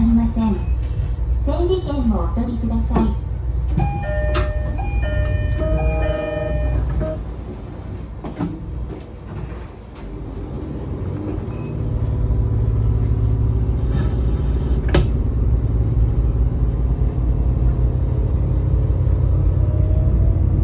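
A diesel engine rumbles steadily.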